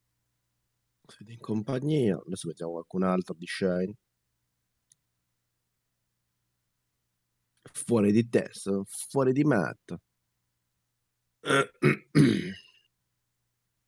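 A young man speaks casually into a close microphone, in short bursts with pauses.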